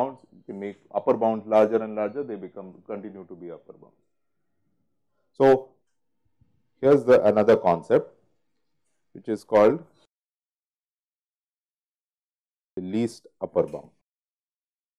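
A man speaks calmly into a close microphone, in pauses.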